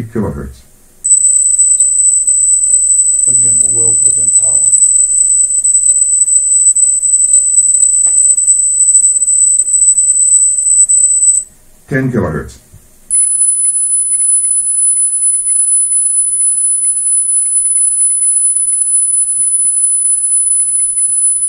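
A steady, very high-pitched test tone sounds from audio equipment, then shifts higher.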